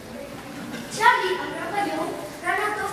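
A young boy speaks loudly and clearly on a stage, heard from a distance.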